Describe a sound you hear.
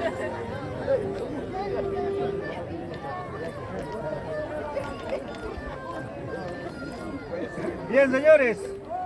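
A crowd murmurs and chatters outdoors.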